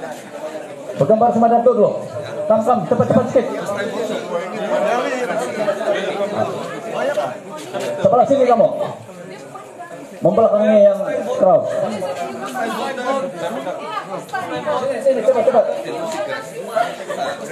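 A crowd of people chatters and laughs nearby.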